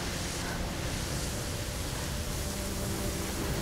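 Footsteps crunch over wet ground.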